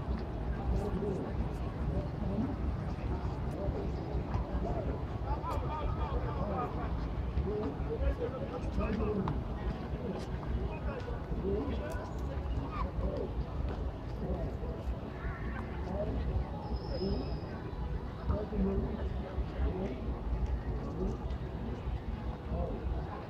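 A crowd of people chatters far off in an open outdoor space.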